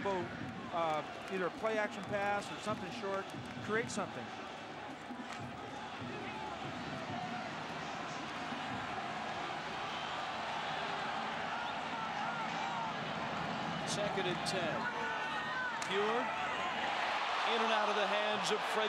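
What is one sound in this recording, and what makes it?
A large stadium crowd roars and cheers, growing louder.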